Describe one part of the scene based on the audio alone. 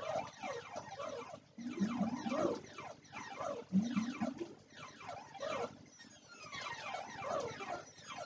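An arcade game beeps and chirps with falling electronic tones.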